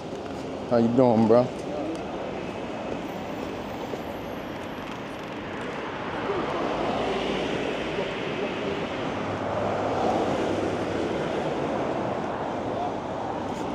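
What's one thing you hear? Wind rushes past while riding an electric bike outdoors.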